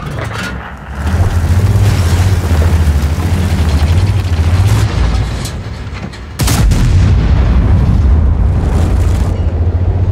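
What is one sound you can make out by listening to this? A heavy tank engine rumbles loudly.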